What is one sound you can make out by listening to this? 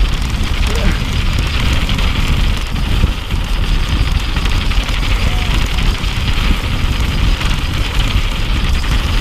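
A bicycle frame and chain rattle over bumps.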